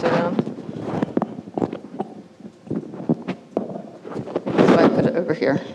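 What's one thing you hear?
A woman speaks into a microphone, explaining with animation.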